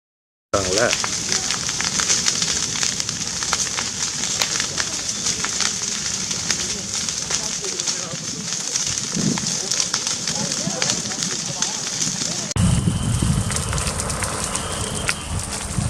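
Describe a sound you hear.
A fire roars and crackles loudly through dry brush.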